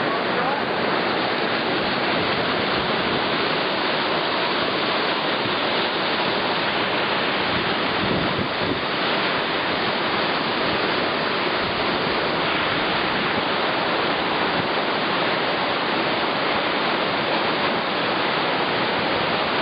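River rapids roar and rush loudly.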